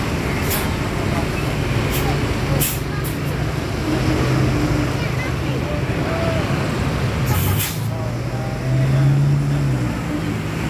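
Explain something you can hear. A bus engine idles with a deep, steady rumble.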